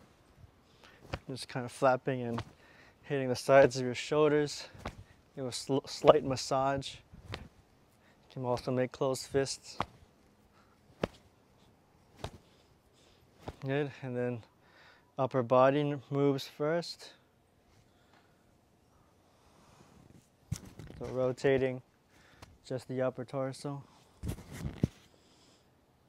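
A young man talks calmly and clearly, close by, in short bursts with pauses.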